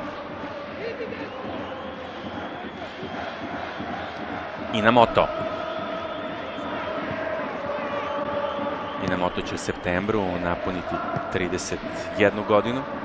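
A large crowd roars and chants steadily in a stadium.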